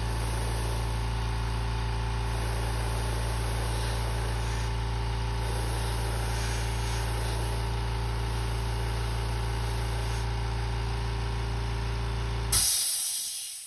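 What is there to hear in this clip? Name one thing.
An airbrush hisses steadily.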